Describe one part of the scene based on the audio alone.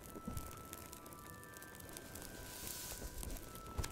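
A book's pages rustle as they turn.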